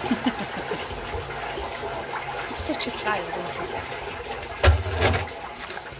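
Water gushes out of a drain pipe and splashes into a chamber below.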